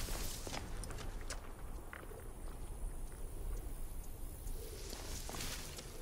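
Leaves and branches rustle.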